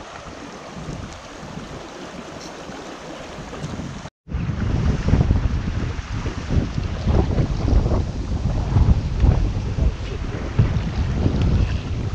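A shallow river rushes over stones.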